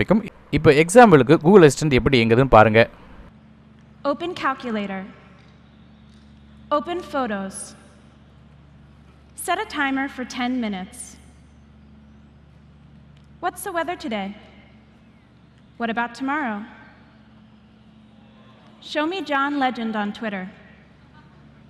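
A young woman speaks short commands into a phone held close, heard through a microphone, with pauses between them.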